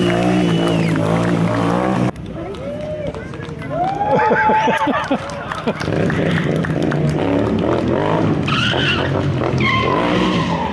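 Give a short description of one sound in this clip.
A motorcycle engine roars and revs nearby.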